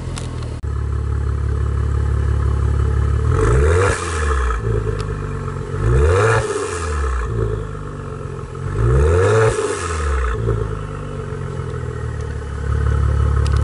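A car engine idles with a deep exhaust rumble close by.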